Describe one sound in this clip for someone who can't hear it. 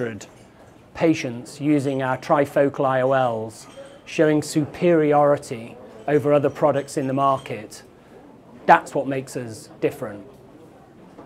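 A middle-aged man speaks calmly into a clip-on microphone, close by.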